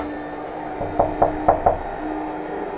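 Someone knocks on a door several times.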